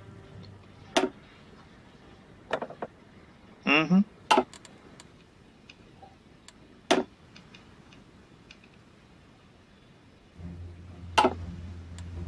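Short interface clicks sound as menus open and close.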